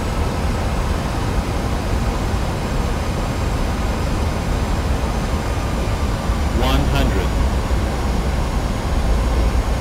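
Jet engines roar steadily as an airliner rolls along a runway.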